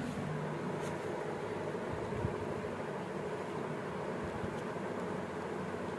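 Small cardboard boxes scrape and tap softly in someone's hands.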